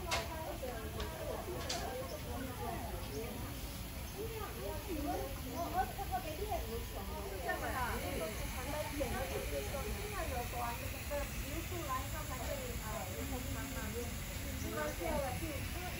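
Mist sprayers hiss softly.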